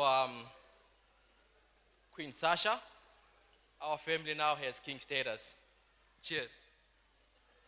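A young man speaks with animation into a microphone over loudspeakers in an echoing hall.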